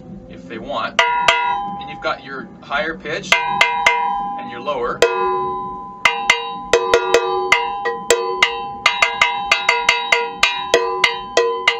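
A mallet strikes a small metal tongue drum, ringing with clear pitched notes.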